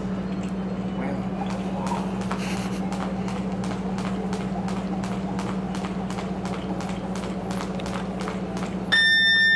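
A skipping rope slaps the floor in a quick, steady rhythm.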